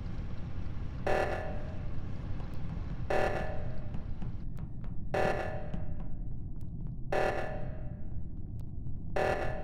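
An alarm blares in short bursts every two seconds.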